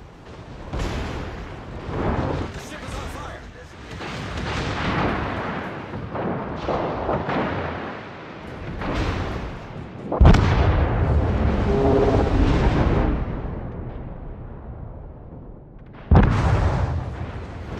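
Heavy naval guns fire with deep booms.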